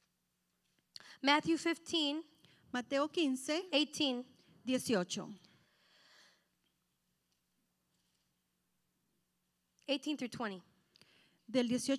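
A woman speaks calmly into a microphone, in short bursts with pauses.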